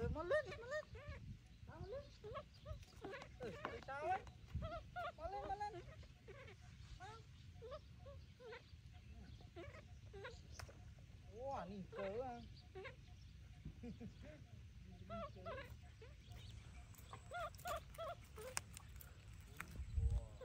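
A baby monkey cries with high, wavering squeals.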